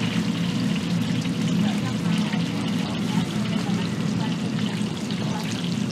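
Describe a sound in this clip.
Water pours from a jug into a bowl.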